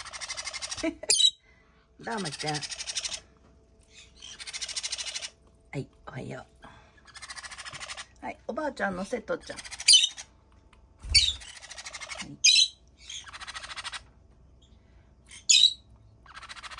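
A parrot gives short, sharp squawks.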